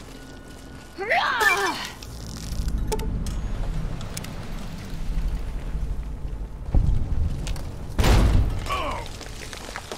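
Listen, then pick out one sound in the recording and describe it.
A flaming blade whooshes as it strikes.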